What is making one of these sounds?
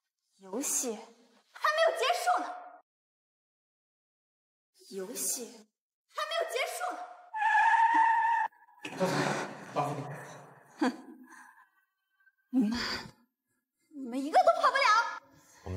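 A young woman speaks sharply and angrily, close by.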